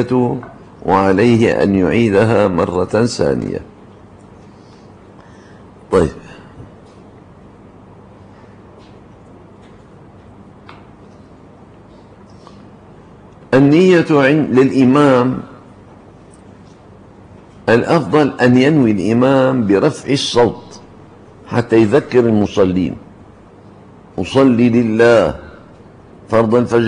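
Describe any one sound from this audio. An elderly man speaks into a microphone in bursts, calmly and then with animation, with pauses between.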